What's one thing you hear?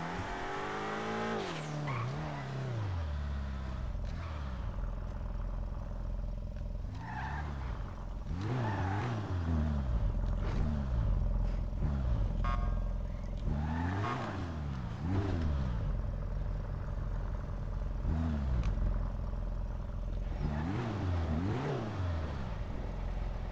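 A car engine revs up and down as it drives.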